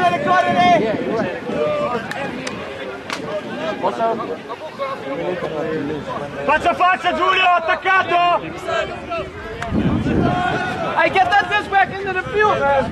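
A man talks loudly and with animation close by.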